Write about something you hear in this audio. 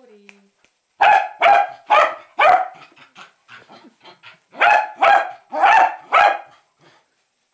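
A dog barks loudly in repeated bursts close by.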